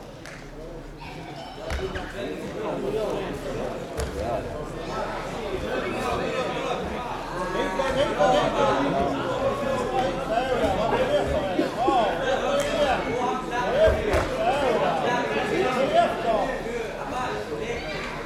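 Bodies thump and scuffle on a mat.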